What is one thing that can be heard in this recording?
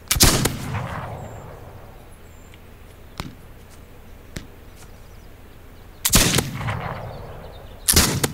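An arrow is loosed from a bow with a sharp twang.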